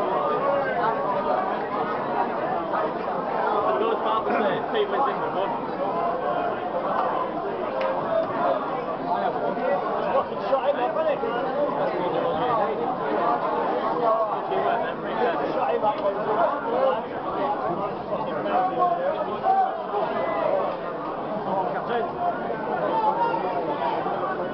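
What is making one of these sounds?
A large crowd of men and women chatters continuously in a busy, echoing hall.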